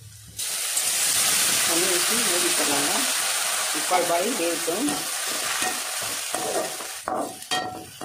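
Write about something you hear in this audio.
Vegetables sizzle loudly in a hot pan.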